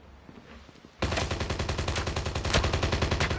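A rapid burst of gunfire rattles loudly.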